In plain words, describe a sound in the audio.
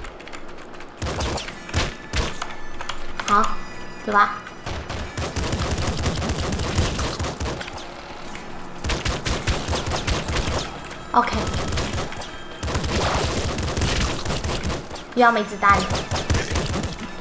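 Gunshots crackle in quick bursts in a video game.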